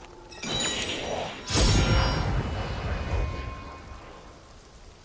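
A bright game chime rings out and shimmers away.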